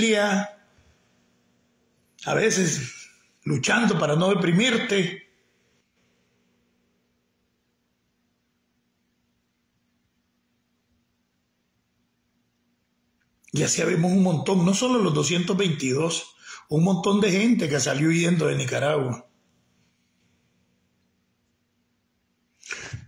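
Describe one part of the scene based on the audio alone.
An older man speaks calmly and close to the microphone, with long pauses.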